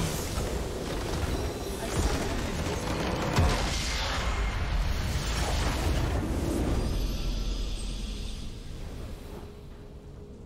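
A game's base explodes with loud crashing blasts.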